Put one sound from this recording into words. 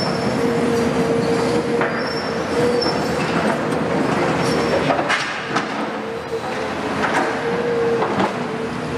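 Heavy diesel engines rumble and whine steadily.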